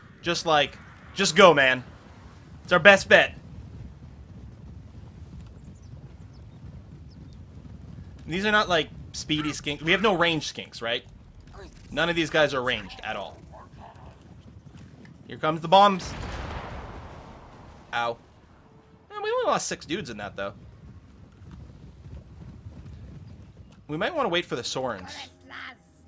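A man talks with animation into a close microphone, in short bursts with pauses.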